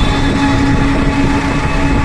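A truck engine rumbles nearby as it passes.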